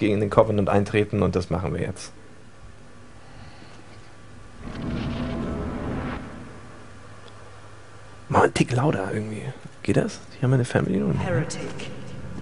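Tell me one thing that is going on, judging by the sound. A young man talks casually, close to a microphone.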